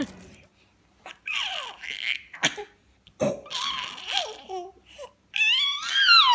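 A baby girl laughs loudly up close.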